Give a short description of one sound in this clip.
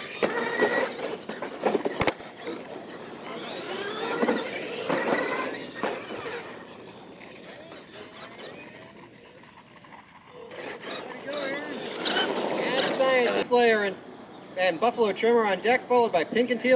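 Small electric motors whine as model trucks race over dirt.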